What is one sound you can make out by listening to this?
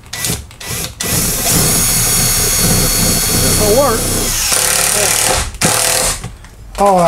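An electric drill whirs steadily for a few seconds.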